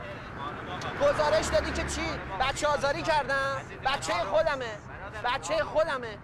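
Several men talk together outdoors.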